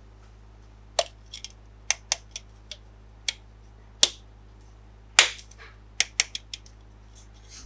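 Plastic toy parts click and tap as a small bottle cap is pressed on.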